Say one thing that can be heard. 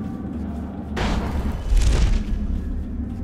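A rushing whoosh sweeps past quickly.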